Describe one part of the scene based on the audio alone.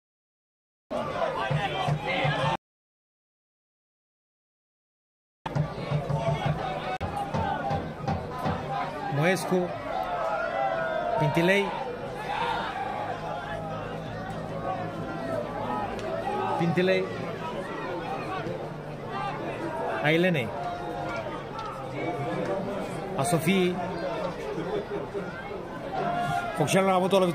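A large outdoor crowd of spectators murmurs and calls out.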